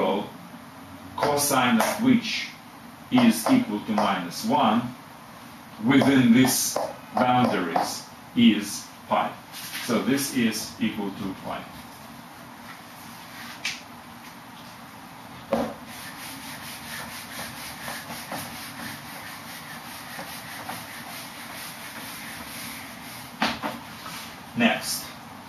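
A middle-aged man speaks calmly, as if explaining.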